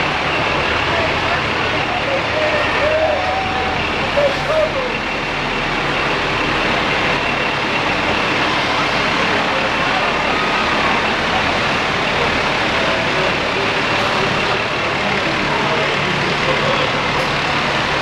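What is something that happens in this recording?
A crowd chatters along a street outdoors.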